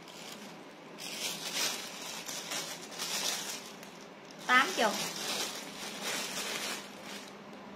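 Plastic wrapping crinkles and rustles.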